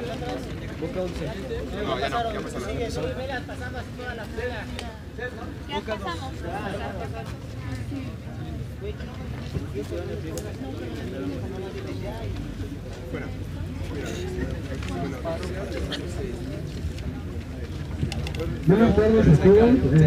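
A young woman speaks loudly to a crowd outdoors.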